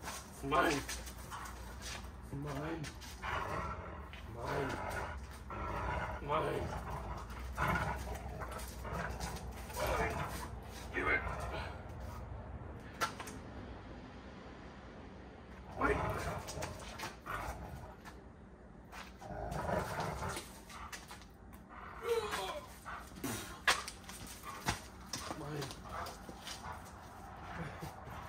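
A man talks to a dog in an encouraging voice.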